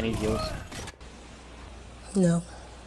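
A woman speaks softly in an interview.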